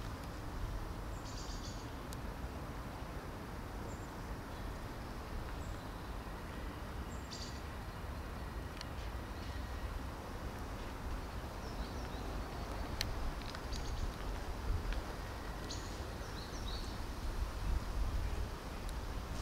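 Cats chew and lap at food with soft smacking sounds.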